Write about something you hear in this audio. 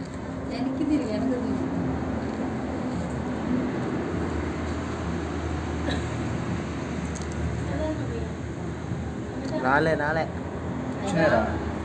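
A comb rasps softly through hair.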